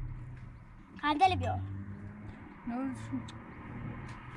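A young boy speaks briefly close by.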